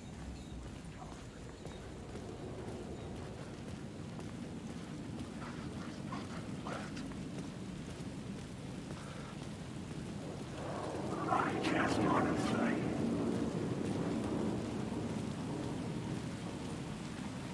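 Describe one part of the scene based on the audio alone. Footsteps crunch slowly over litter on a hard path.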